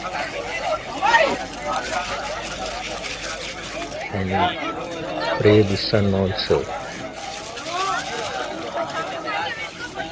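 A man murmurs a prayer softly nearby.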